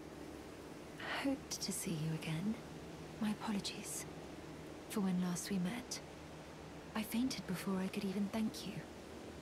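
A young man speaks softly and calmly.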